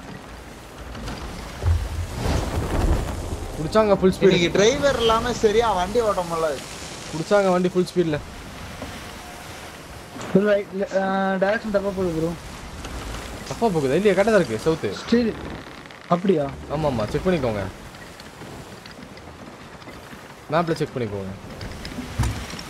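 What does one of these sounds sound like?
Ocean waves wash and rumble steadily.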